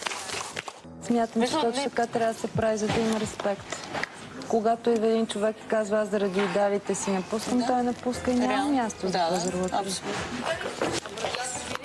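A woman talks with animation nearby.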